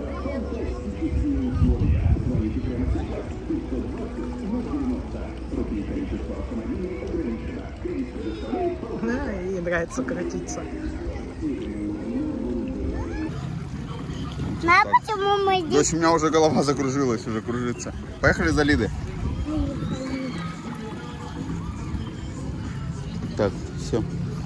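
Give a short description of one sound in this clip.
Children shout and laugh nearby outdoors.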